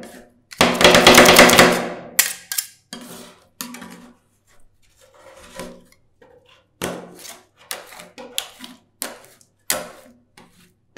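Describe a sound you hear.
Metal spatulas scrape and tap against a cold metal plate.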